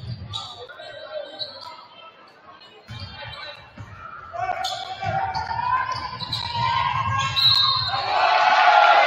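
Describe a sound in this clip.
Basketball players' sneakers squeak on a hardwood court in a large echoing gym.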